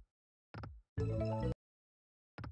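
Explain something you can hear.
A short electronic jingle chimes for a win.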